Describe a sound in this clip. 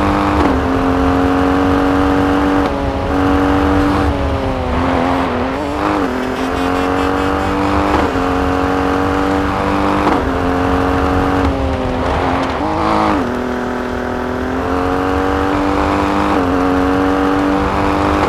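Tyres crunch over gravel and snow.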